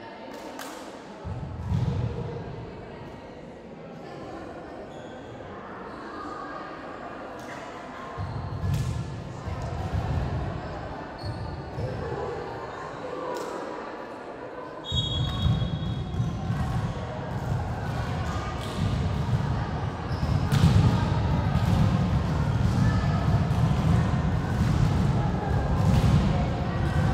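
Volleyballs thud and bounce in a large echoing hall.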